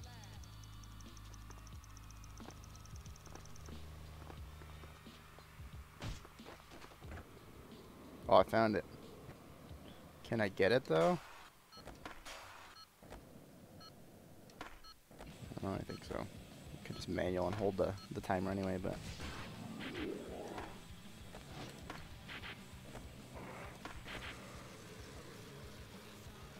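Skateboard wheels roll and clack on concrete.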